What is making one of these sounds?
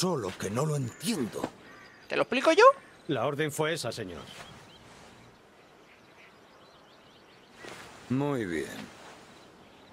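A young man speaks forcefully, close by.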